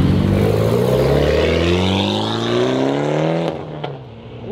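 A car engine revs loudly, rising in pitch.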